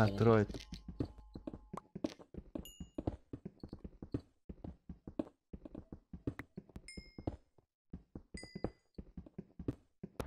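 A pickaxe chips at stone with quick, repeated taps.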